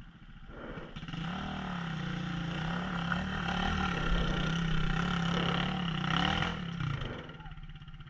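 A dirt bike engine roars loudly as it climbs close by.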